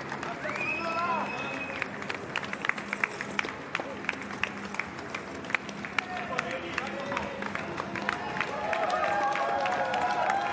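Runners' footsteps patter quickly on pavement.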